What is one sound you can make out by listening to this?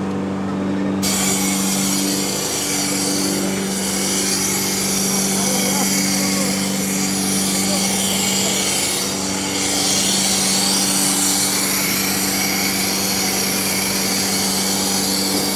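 A fire hose sprays water with a loud hiss.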